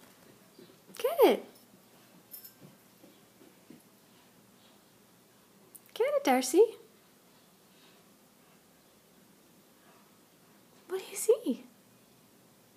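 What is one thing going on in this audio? A dog lets out short, rising and falling howls.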